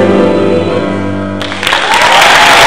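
A choir sings together in a large hall.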